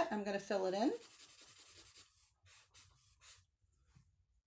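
A marker squeaks on paper.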